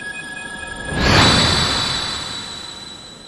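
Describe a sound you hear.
A large clock bell strikes once with a deep boom and rings on, slowly fading.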